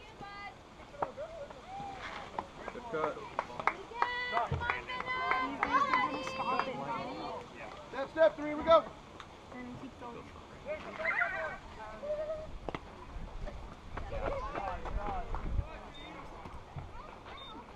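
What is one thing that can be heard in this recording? Children shout and cheer outdoors.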